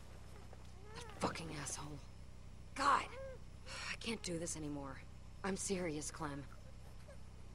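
A woman speaks in a strained, upset voice.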